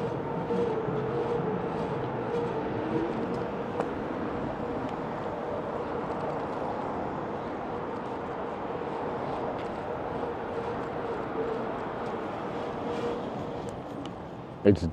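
Bike tyres roll over concrete pavement.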